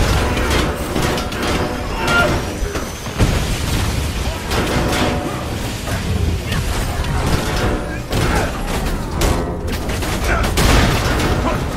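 Punches and energy blasts crash and zap in rapid succession.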